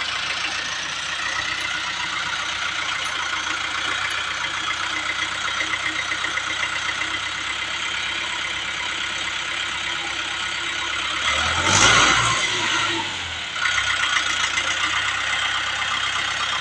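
A hydraulic loader arm whines as it lifts.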